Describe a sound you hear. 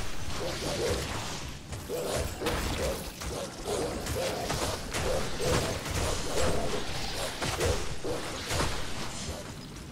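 Game spells zap and crash in a fight.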